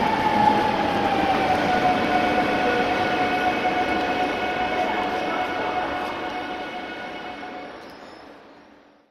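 An electric train hums with a steady, slightly falling whine that slowly fades.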